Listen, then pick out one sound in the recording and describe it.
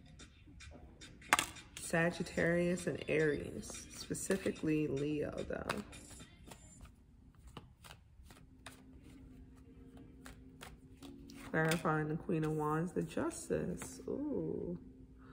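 Cards flap and rustle as they are shuffled.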